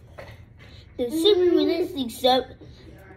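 A young boy speaks close by with animation.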